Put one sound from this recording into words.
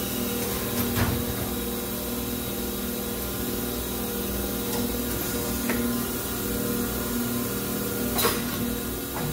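A machine's hydraulics clunk now and then.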